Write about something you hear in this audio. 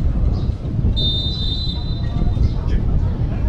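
A referee's whistle blows once, short and shrill.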